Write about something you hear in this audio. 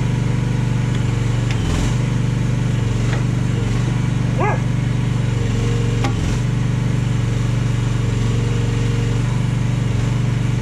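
A small diesel engine idles steadily with a low rumble.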